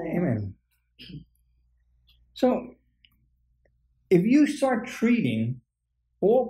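A middle-aged man speaks calmly nearby, with pauses.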